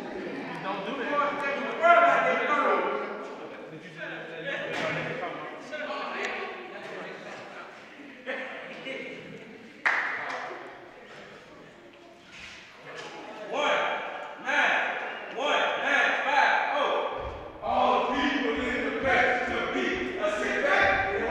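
Young men sing together in a room with some echo.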